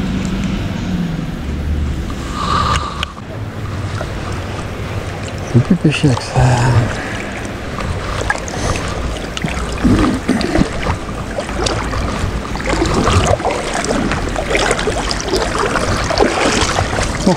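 A shallow stream ripples and gurgles nearby.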